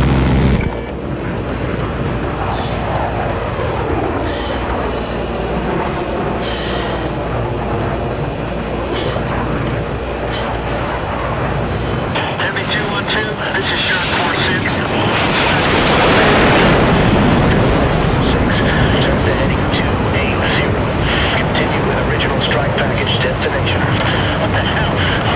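A jet engine roars steadily from the cockpit.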